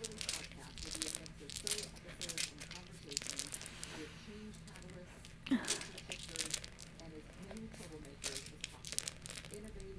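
Dice rattle in a hand and clatter onto a hard table.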